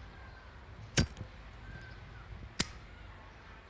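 A cigarette lighter clicks.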